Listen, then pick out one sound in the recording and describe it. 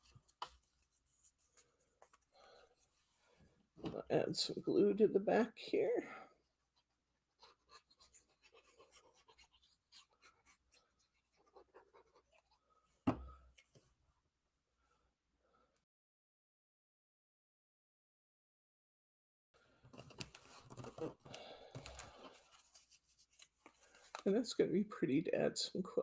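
Paper rustles as a card is folded and handled.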